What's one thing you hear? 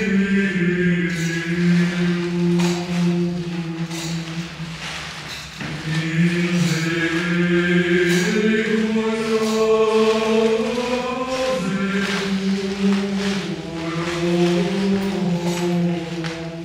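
Men chant a slow, sustained melody together.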